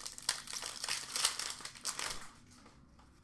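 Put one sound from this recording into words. Cellophane wrapping crinkles and rustles.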